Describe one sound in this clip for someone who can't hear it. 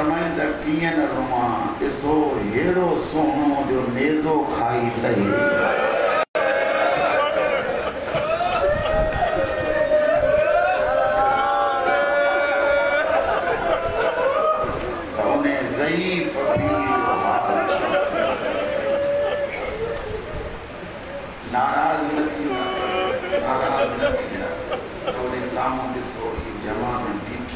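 A man recites with feeling into a microphone, heard through loudspeakers in an echoing hall.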